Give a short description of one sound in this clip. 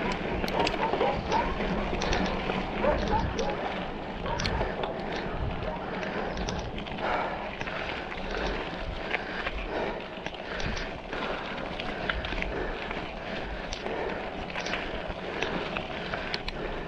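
Bicycle tyres roll and crunch over a rough dirt and paved road.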